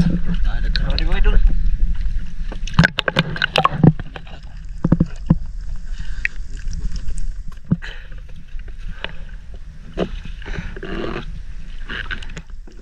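Water laps and splashes gently close by.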